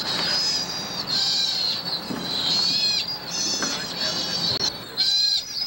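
A sea otter squeals shrilly in repeated bursts.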